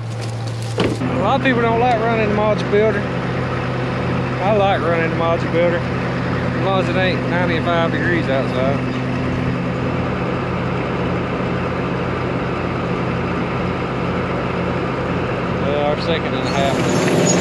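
An engine hums steadily nearby.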